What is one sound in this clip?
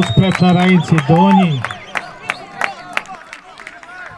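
Young men shout and cheer up close outdoors.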